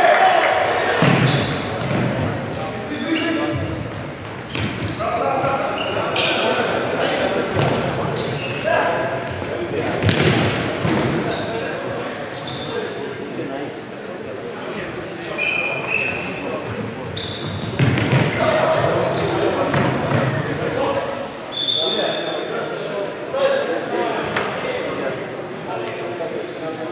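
Young men shout and call out to each other, echoing in a large hall.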